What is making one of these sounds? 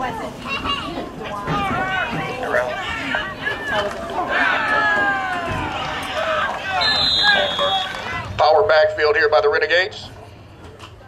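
Spectators shout and cheer loudly nearby, outdoors.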